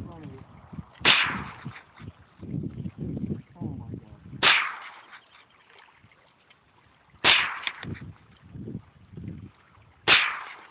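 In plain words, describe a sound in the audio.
A rifle fires loud single shots outdoors, each followed by a rolling echo.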